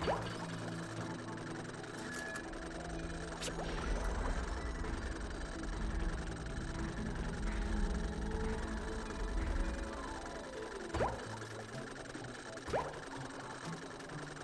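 Cheerful video game music plays steadily throughout.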